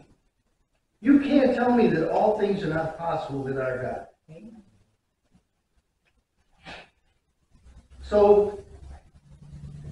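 An elderly man speaks calmly in a small echoing room.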